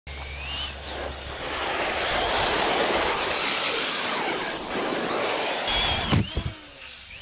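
A small electric motor whines, rising and falling in pitch.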